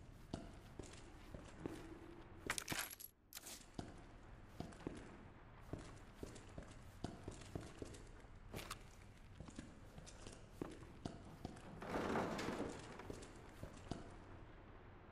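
Footsteps tread on a hard tiled floor.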